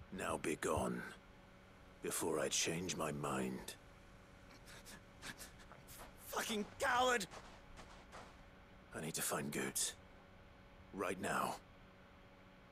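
A man speaks in a deep, firm voice close by.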